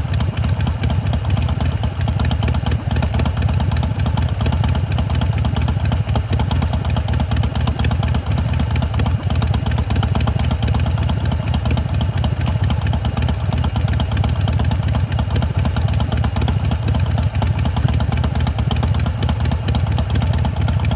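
A motorcycle engine idles with a steady, loud, throbbing rumble.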